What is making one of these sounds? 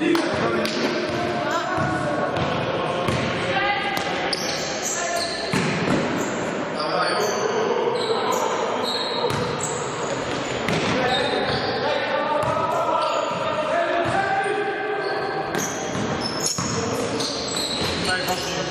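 Sneakers squeak on a hard floor in a large echoing hall.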